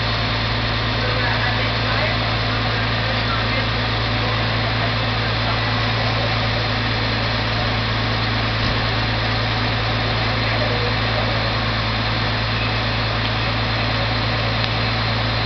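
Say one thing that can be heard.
A fire engine's engine idles with a steady low rumble.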